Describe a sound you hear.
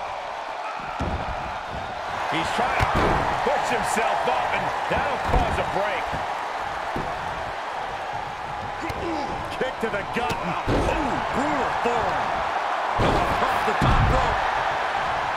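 Heavy bodies thud onto a wrestling ring mat.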